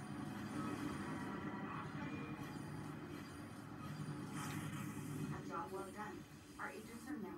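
Video game music and effects play through a television's loudspeakers.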